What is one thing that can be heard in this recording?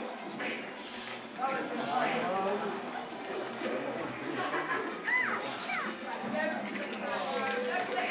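Video game fighting sounds play from a television speaker, with quick hits and whooshes.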